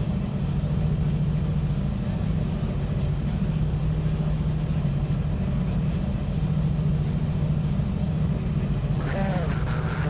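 A race car engine idles with a low, steady rumble.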